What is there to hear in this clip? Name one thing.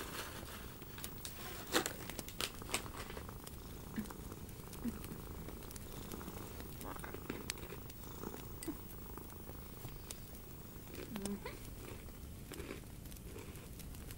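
Long fingernails tap and click against objects close by.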